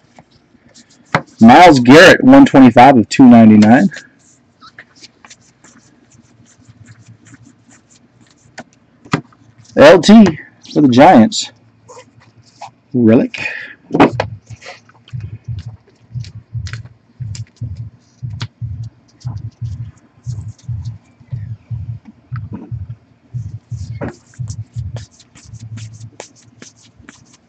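Trading cards rustle and flick as hands shuffle through them.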